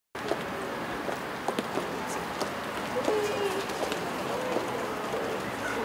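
Footsteps go down concrete stairs.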